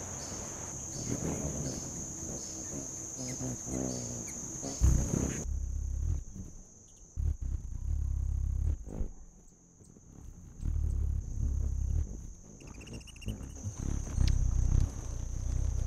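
A hummingbird's wings hum as it hovers.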